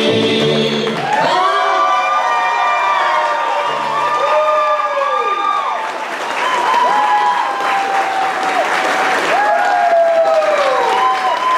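A fiddle plays long sliding notes.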